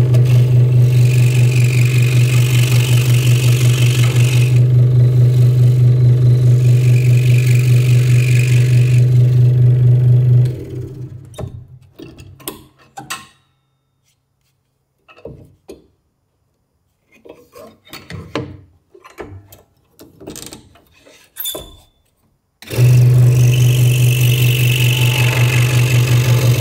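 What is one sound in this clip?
A scroll saw buzzes steadily as it cuts through wood.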